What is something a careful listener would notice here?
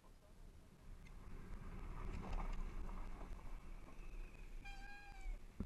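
A dirt bike engine starts and runs up close.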